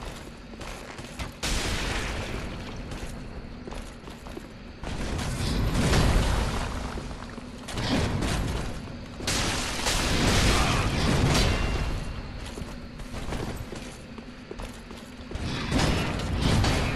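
Swords clash and scrape against armour.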